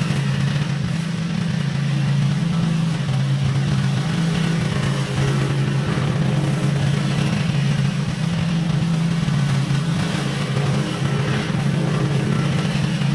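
A lawn mower engine drones steadily, loud up close and softer farther off.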